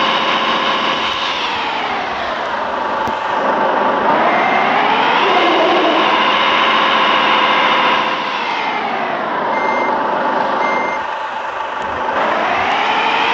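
A heavy truck engine drones steadily, rising and falling in pitch as it revs up and slows.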